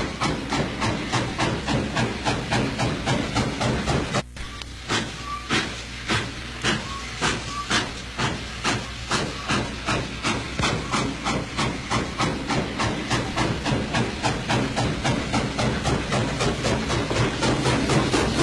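A steam locomotive chugs with rapid, steady puffs.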